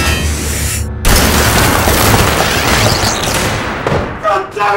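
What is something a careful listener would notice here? A loud blast roars and rumbles.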